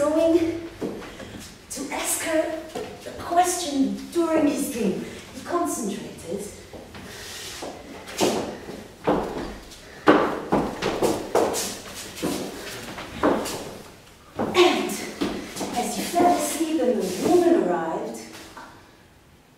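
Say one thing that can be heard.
A woman speaks expressively nearby in a reverberant room.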